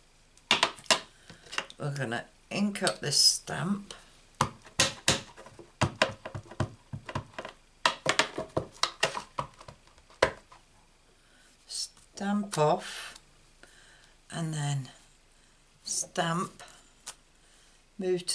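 Hands tap and shuffle paper on a table.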